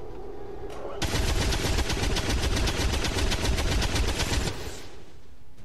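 A heavy machine gun fires a long, rapid, roaring burst.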